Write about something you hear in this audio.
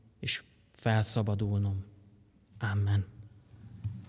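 A young man speaks calmly through a microphone in a large echoing hall.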